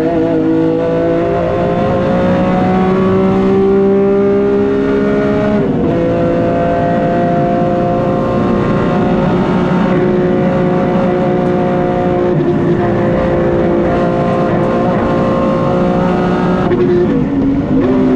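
A race car engine roars loudly from inside the cabin, rising in pitch and dropping briefly at each gear change.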